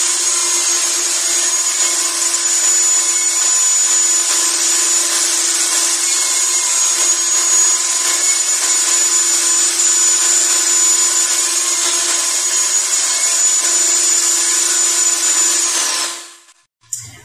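A table saw whines steadily as wood is pushed through it.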